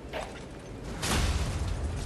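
Metal strikes metal with a sharp clang.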